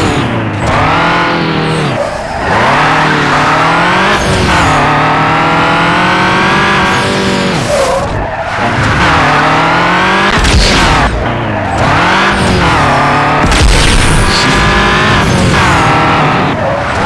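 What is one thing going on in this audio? A sports car engine revs at full throttle, climbing in pitch and dropping with each gear change.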